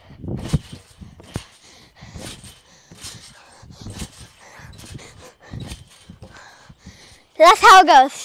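A trampoline mat thumps and creaks rhythmically as a girl bounces.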